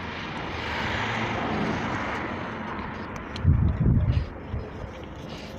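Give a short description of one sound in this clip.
Construction work clatters and rumbles at a distance outdoors.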